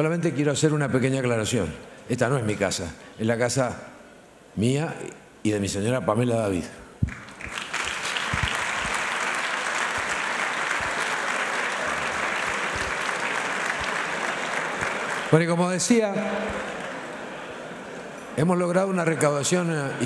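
A middle-aged man speaks with animation through a microphone and loudspeakers in a large echoing hall.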